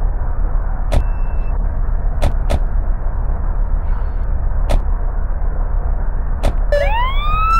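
Car doors slam shut one after another.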